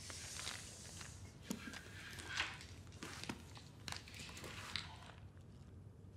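Papers rustle as they are handled.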